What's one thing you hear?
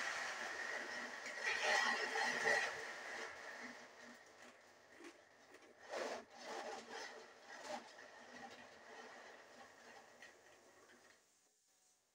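A blender whirs and grinds.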